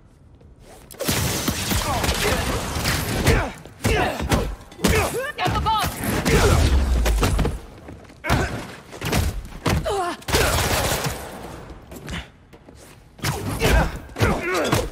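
Punches and kicks thud in a fast brawl.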